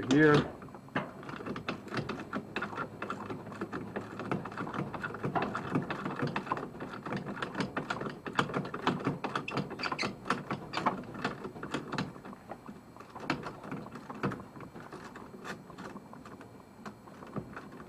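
Metal tools click and clink rapidly against engine parts.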